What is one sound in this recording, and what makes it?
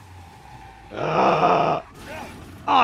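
A car crashes with a loud crunch.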